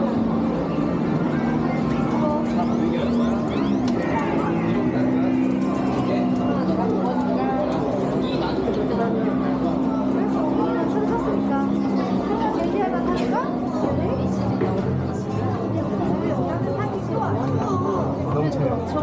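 A crowd of people chatters in a busy hall.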